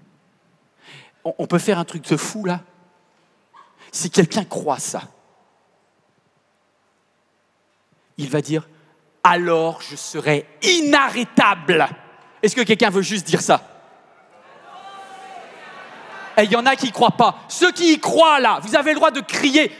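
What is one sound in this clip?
A man speaks with animation into a microphone in a large hall, pausing between phrases.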